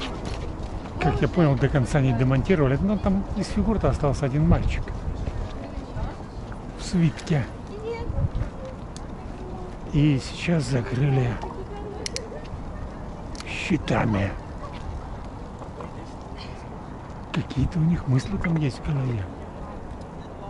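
A man talks close by, calmly, in short bursts.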